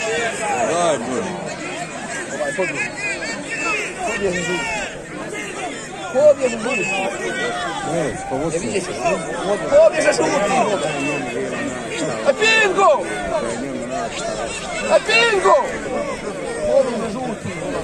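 A large crowd of men and women chatters and calls out outdoors.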